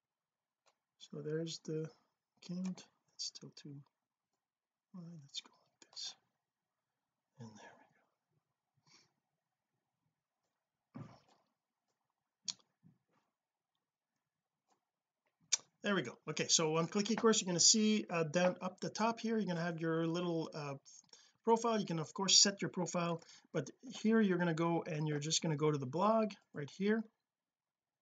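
A middle-aged man speaks calmly into a close microphone, pausing often.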